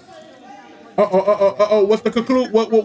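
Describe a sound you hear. A man talks loudly and with animation close to a microphone.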